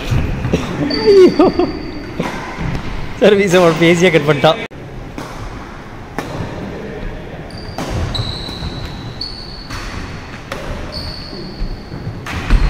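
Shoes squeak sharply on a wooden court.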